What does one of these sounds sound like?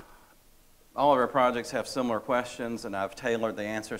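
A man speaks calmly to a room, presenting.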